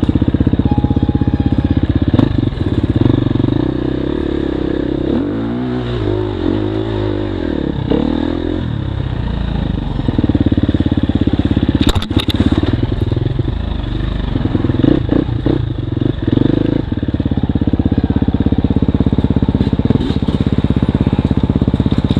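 A dirt bike engine revs and putters close by, rising and falling in pitch.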